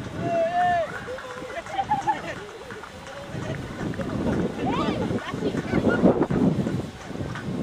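A crowd of people chatters and cheers outdoors.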